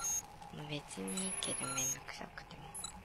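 An electronic scanner gives a short series of beeps.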